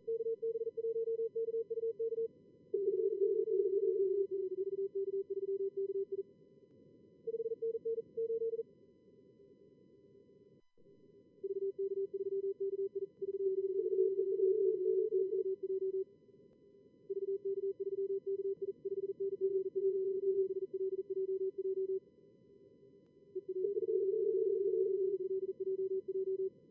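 Morse code tones beep in rapid bursts, at times two pitches at once.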